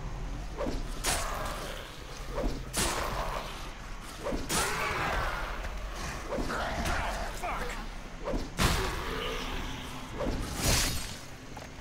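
A blade slashes and thuds into flesh.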